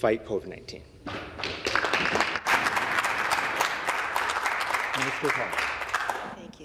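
A crowd applauds and bangs on desks.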